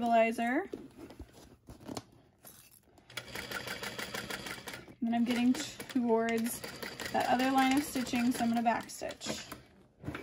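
A sewing machine hums and clatters as it stitches.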